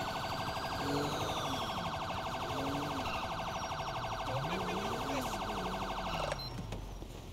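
A police siren wails in a rapid yelp.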